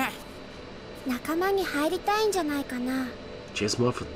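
A young girl asks a question calmly up close.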